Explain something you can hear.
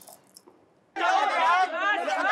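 A crowd of people shout and call out loudly outdoors.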